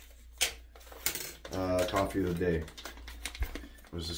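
A paper bag crinkles.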